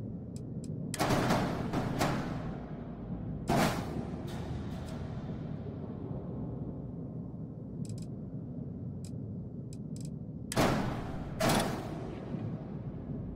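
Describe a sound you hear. Game menu sounds whoosh and thud as parts snap into place.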